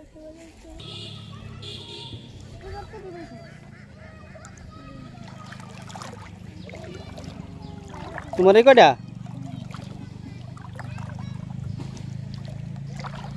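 Water sloshes as someone wades through it.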